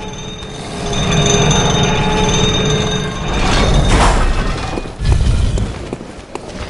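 A lift cage rumbles and grinds as it moves.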